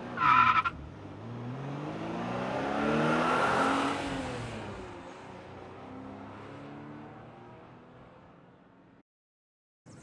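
A lawn mower's electric motor whirs as it drives slowly.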